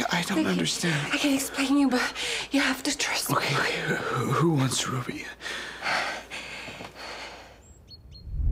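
A young woman shouts desperately, close by.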